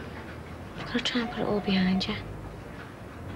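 Another young woman speaks softly nearby.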